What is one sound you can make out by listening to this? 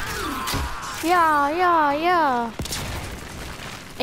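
A blade swings and strikes with sharp whooshes.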